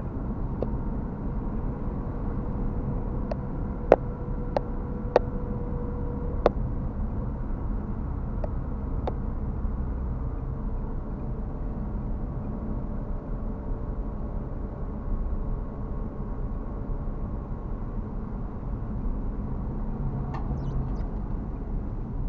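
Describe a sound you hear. A car engine hums steadily with low road rumble from inside the car.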